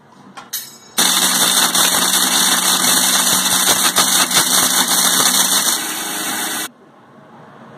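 A mixer grinder whirs loudly and steadily.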